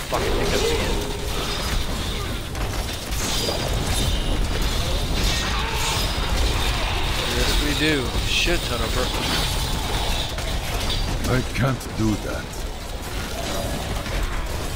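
Magic spells and explosions crackle and boom continuously.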